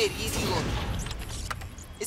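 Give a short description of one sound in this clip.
Fingers type on a computer keyboard.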